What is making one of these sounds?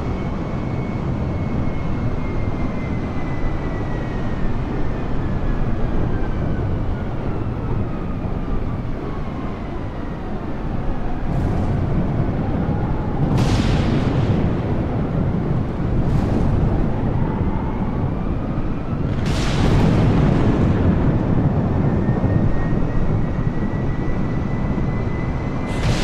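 Jet engines roar steadily with a whining tone that slowly falls and rises.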